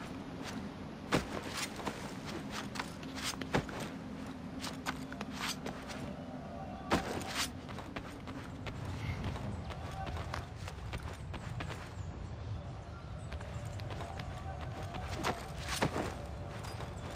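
A figure's hands and feet thud and scrape on stone while climbing.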